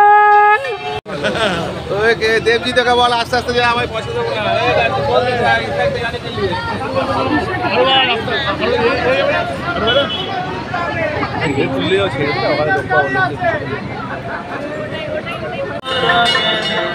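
A crowd of men and women chatter and call out excitedly close by.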